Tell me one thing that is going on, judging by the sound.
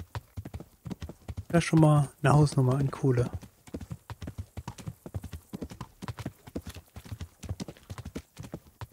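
A horse's hooves clop steadily on a dirt road.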